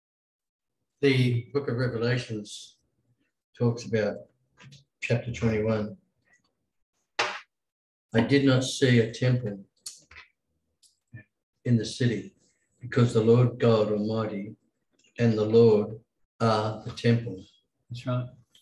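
A middle-aged man speaks calmly through an online call microphone.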